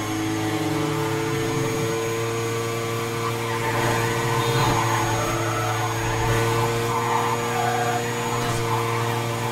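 A racing car engine roars steadily at high speed.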